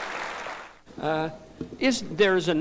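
A man speaks to an audience through a microphone in a large hall.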